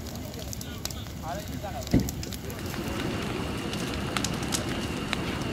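Burning items pop and snap in the flames.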